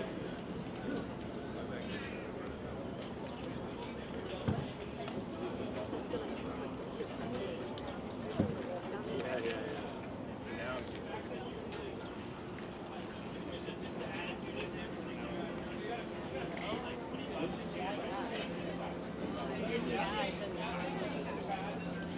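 Men and women chat and murmur nearby outdoors.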